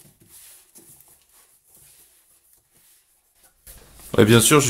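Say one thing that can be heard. Cardboard flaps rustle and scrape as a box is opened.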